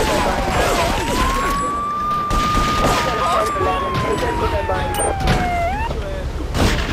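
A police siren wails, sliding up and down.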